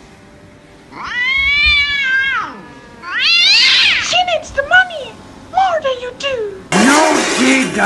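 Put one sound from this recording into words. A young woman sobs and wails loudly.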